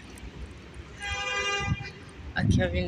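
A pedestrian crossing signal beeps rapidly.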